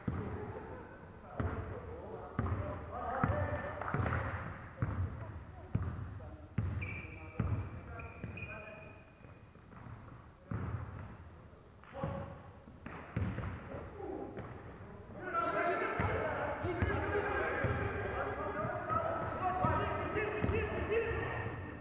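A basketball bounces with hollow thuds that echo through a large hall.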